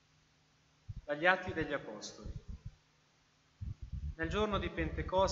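A second man reads out through a microphone in an echoing hall.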